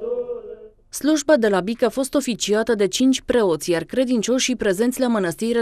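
A middle-aged man chants loudly and close into a microphone.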